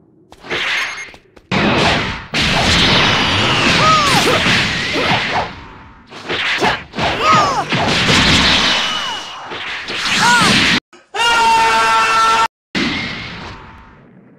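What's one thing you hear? Energy blasts whoosh and crackle loudly.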